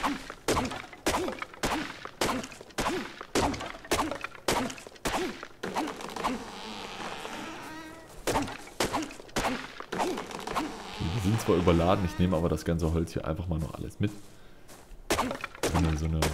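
A stone hatchet strikes wood in quick, regular chops.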